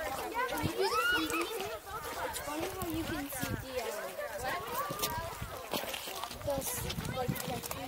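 Several adult men and women chat nearby outdoors.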